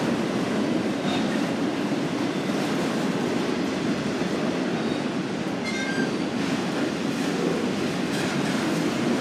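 A long freight train rumbles past steadily close by.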